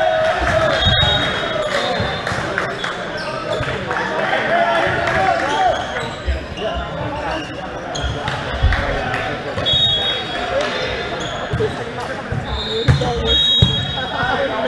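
A volleyball is hit with sharp smacks in a large echoing hall.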